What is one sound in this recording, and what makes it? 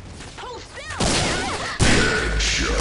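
A gun fires loud blasts in a game.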